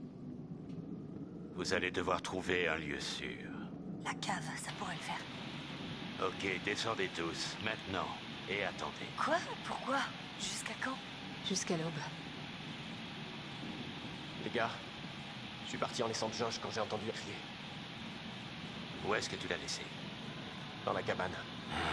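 An older man speaks tensely in a low, gruff voice.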